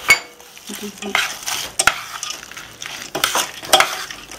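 A spoon stirs nuts with a soft rustling.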